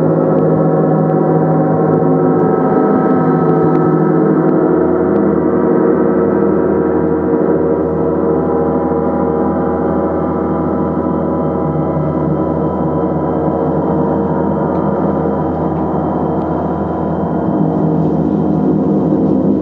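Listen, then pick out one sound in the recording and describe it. A large gong rumbles and shimmers in a long, swelling drone.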